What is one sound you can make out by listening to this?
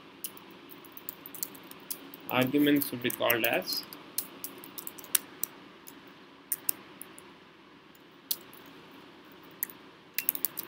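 Computer keys click in quick, uneven bursts of typing.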